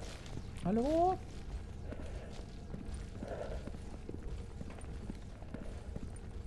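Footsteps tread slowly on a hard floor.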